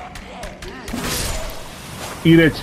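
A blade swings and strikes with a sharp magical burst.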